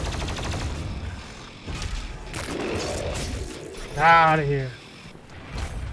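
A monster snarls and roars.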